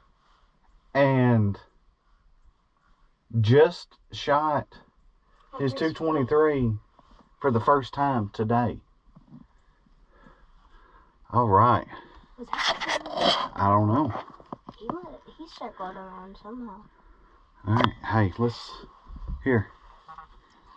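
A young boy talks and laughs close by.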